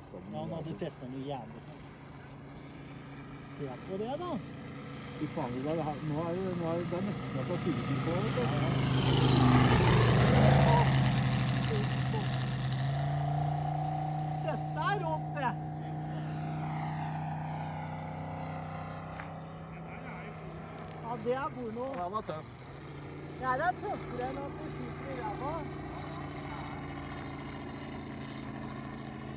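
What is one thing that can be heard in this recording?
A model airplane engine buzzes overhead, growing louder as it swoops past and then fading into the distance.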